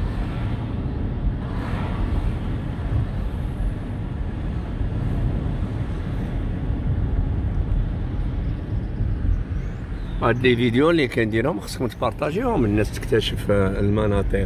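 A car engine hums with the steady rumble of tyres on the road.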